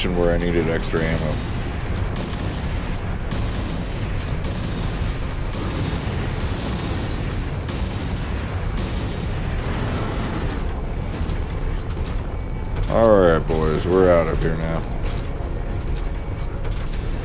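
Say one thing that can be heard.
Weapons fire in repeated bursts.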